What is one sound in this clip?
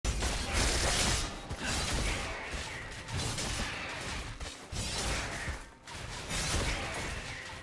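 Game characters clash with sword slashes and spell effects.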